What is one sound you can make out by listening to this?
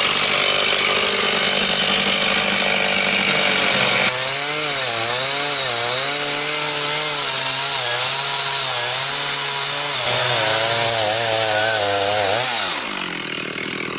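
A chainsaw rips lengthwise through a log under load, then winds down.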